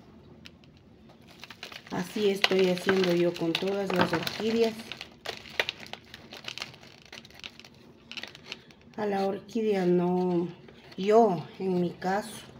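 Soil rustles and crumbles as hands press it into a plastic pot.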